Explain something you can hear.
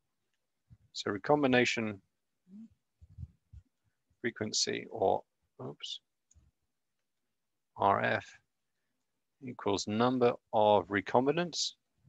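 A young man talks calmly into a microphone, in short bursts with pauses.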